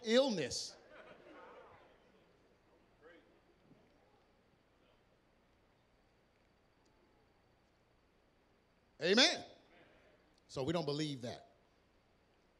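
A man speaks with animation into a microphone over loudspeakers in a large echoing hall.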